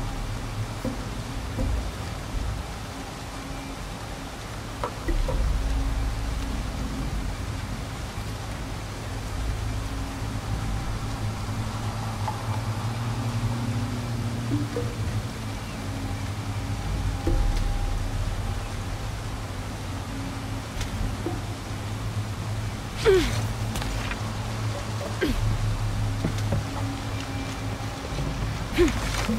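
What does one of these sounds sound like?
Water rushes and churns below in a low steady rumble.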